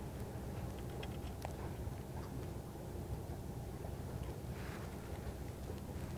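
Fingers rustle and click softly while handling a fishing line.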